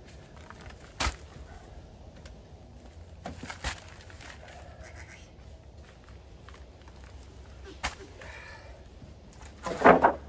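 Heavy paper sacks thud as they are dropped onto a stack.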